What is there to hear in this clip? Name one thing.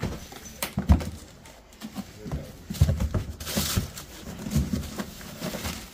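Cardboard flaps rustle as a box is opened.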